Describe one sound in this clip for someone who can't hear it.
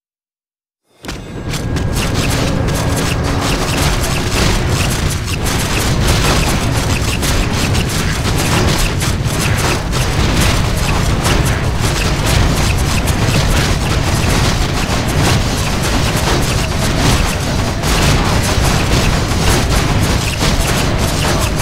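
Swords clash and spells crackle in a loud, busy battle.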